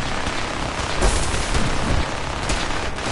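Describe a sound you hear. Heavy metal machinery clanks and thuds.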